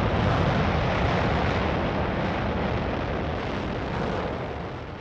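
An energy blast roars loudly and slowly fades.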